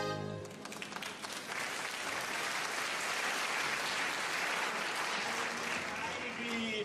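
A large crowd applauds loudly.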